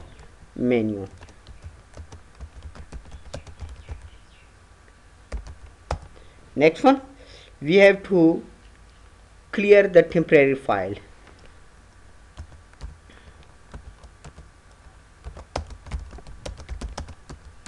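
Keys clatter on a computer keyboard in short bursts.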